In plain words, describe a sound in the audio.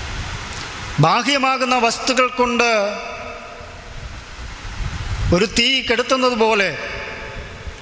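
A young man sings through a microphone in two short phrases.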